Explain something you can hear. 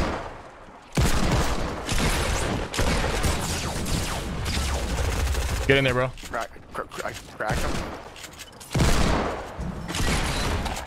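Gunshots and building noises crackle from a video game.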